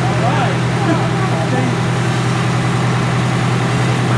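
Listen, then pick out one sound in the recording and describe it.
A fire engine's motor rumbles nearby.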